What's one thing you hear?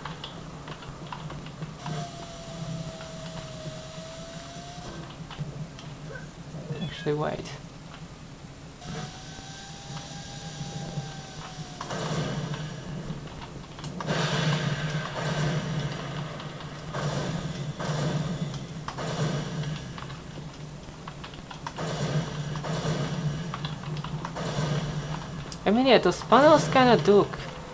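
Game sound effects play through small loudspeakers.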